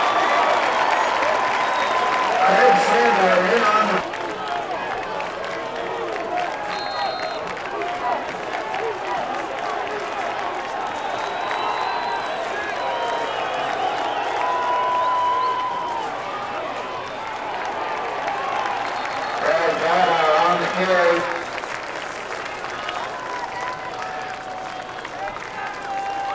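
A crowd cheers and chatters across an outdoor field.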